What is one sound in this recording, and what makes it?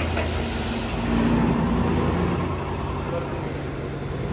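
Fuel gushes and gurgles into a tank.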